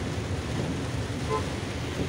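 Windscreen wipers swish across the glass.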